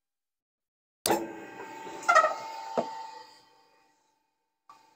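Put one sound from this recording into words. An electric motor starts with a thud, hums steadily and then winds down.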